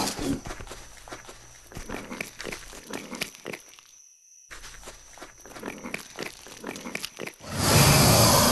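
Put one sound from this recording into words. A large reptile chomps and tears at its prey in quick, crunching bites.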